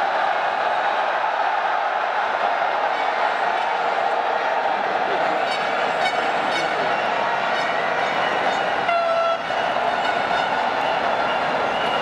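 A large stadium crowd murmurs and cheers in a large open stadium.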